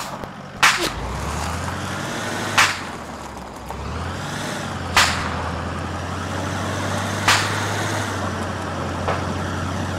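A heavy vehicle engine rumbles steadily as it drives.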